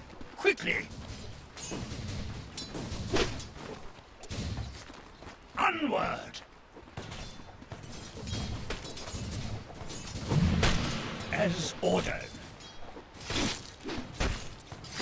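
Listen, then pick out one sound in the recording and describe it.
Magic spells burst and whoosh.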